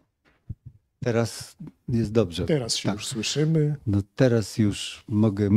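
A man speaks into a microphone with animation.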